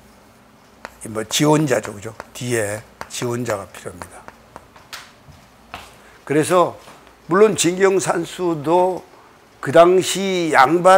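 A middle-aged man speaks with animation through a clip-on microphone.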